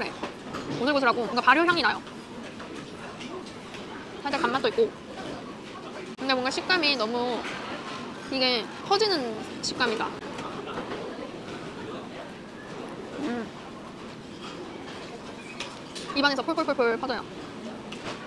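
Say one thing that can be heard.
A young woman talks calmly and closely into a microphone.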